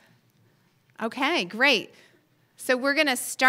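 A woman speaks calmly into a microphone in a large, echoing room.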